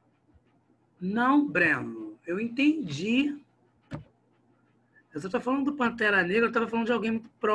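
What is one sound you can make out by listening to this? A man speaks calmly into a microphone, heard over an online call.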